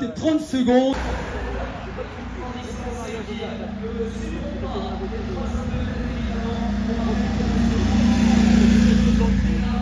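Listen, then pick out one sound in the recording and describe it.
A motorcycle engine hums and grows louder as it approaches.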